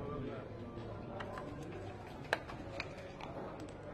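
Dice rattle in a cup.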